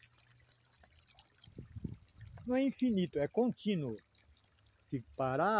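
Water trickles from a pipe into a tank.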